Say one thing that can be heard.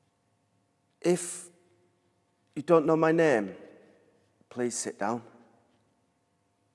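A young man speaks expressively into a close microphone, in short bursts with pauses.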